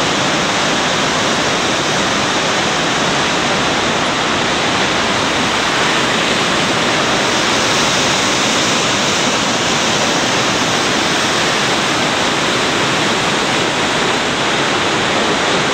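A rushing river roars steadily.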